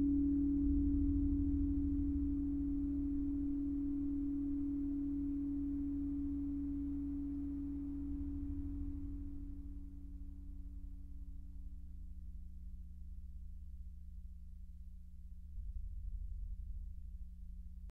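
A low electronic drone hums steadily.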